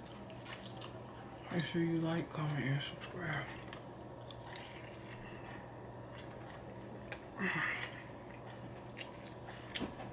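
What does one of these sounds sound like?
A man chews food noisily.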